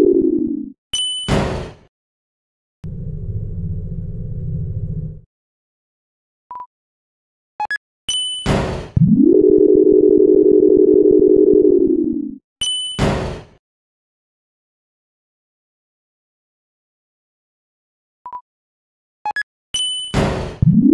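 A game chime rings brightly.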